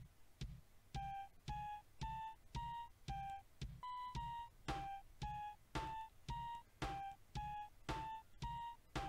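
Short bright musical notes play in a bouncy, rising and falling tune.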